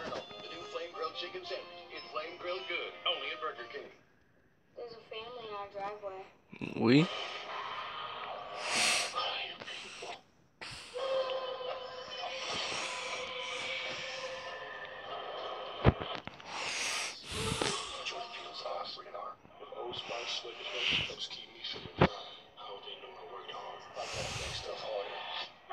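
A television plays music and dramatic sound effects in a small room.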